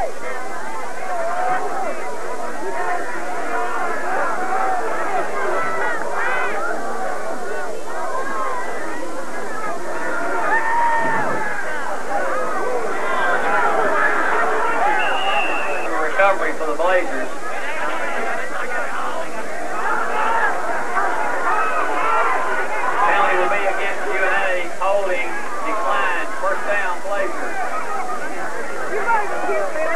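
A crowd of people chatters and calls out loudly all around, outdoors.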